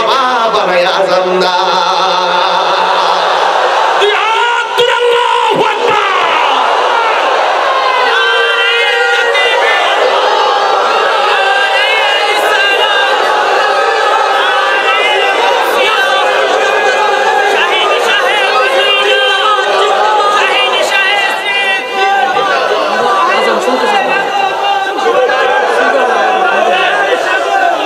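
A man shouts with passion into a microphone, heard over loudspeakers.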